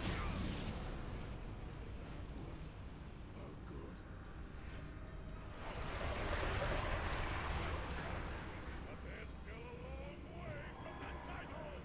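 Magic spells whoosh and shimmer.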